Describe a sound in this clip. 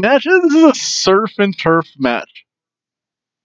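A man speaks with animation through a headset microphone.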